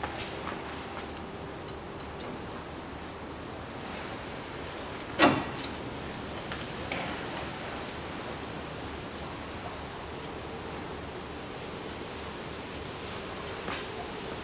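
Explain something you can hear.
A metal bar knocks and clanks against a car's suspension.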